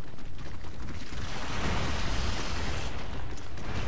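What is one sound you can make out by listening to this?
A loud icy blast whooshes and hisses.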